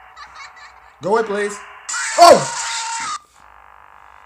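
A young man screams loudly into a microphone.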